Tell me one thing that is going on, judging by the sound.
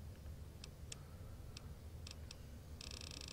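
Soft menu ticks click as a selection moves through a list.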